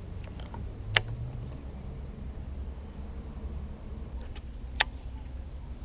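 A fishing reel clicks sharply.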